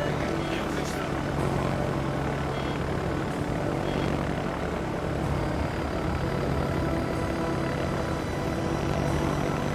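Anti-aircraft guns fire in bursts of pops.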